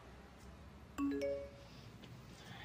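A phone chimes with a short message alert.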